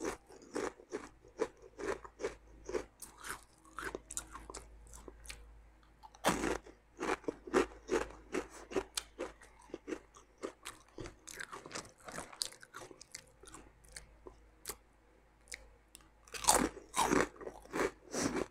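A crisp packet rustles and crinkles close by.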